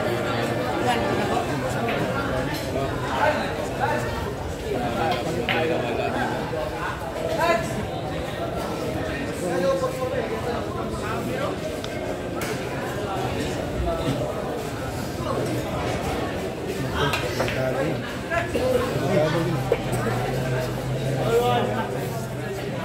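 A crowd of men murmurs and chatters nearby.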